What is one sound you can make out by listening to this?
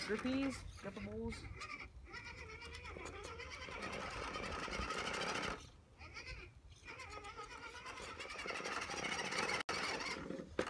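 An electric toy truck's motor whines as it climbs.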